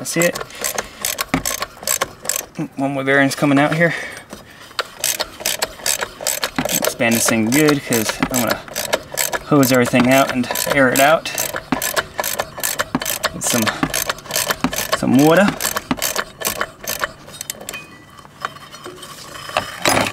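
Metal tools clink and knock against metal parts.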